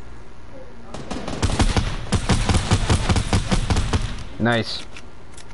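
Video game gunfire cracks in quick bursts.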